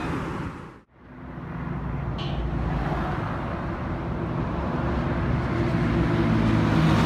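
Traffic roars steadily along a highway.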